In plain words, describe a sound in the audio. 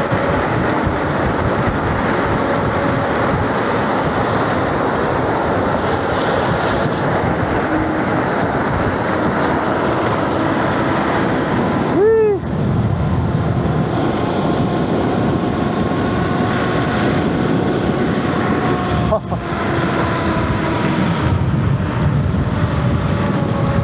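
An electric scooter motor whines steadily and changes pitch with speed.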